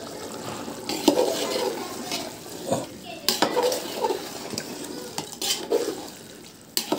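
A metal ladle scrapes and knocks against a pot while stirring.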